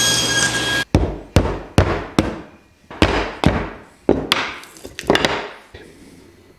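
A mallet taps a chisel into wood in sharp knocks.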